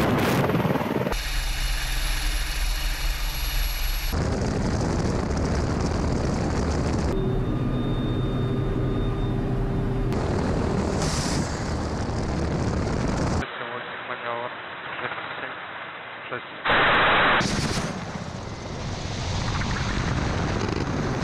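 A helicopter's rotor thumps loudly and steadily close by.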